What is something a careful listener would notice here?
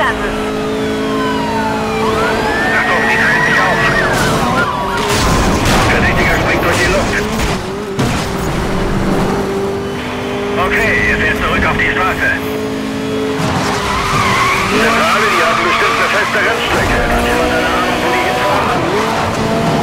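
A sports car engine roars at high speed.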